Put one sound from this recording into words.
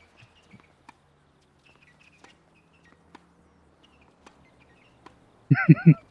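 A tennis ball bounces on a clay court.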